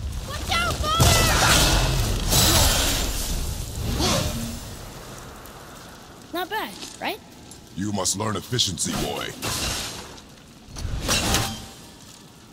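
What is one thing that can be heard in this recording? An axe strikes hard.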